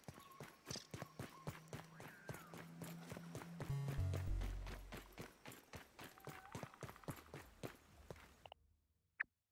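Footsteps crunch quickly over soft ground.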